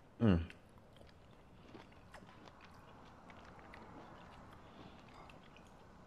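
A young man chews food with soft crunching.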